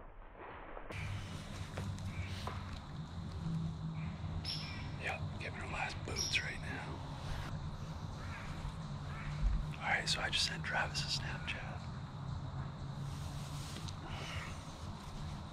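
A man speaks quietly, close by.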